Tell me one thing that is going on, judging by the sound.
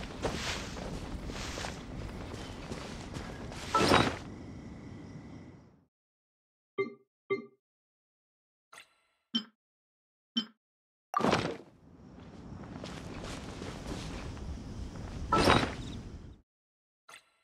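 Footsteps rush through rustling leafy plants.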